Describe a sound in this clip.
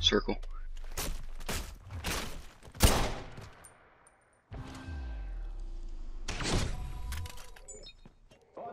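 Gunshots bang loudly in quick succession.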